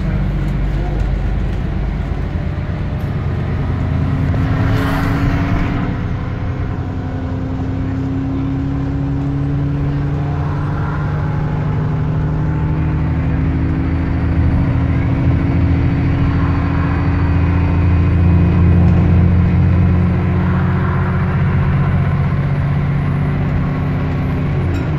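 A bus engine hums and drones steadily, rising and falling in pitch as the bus drives along.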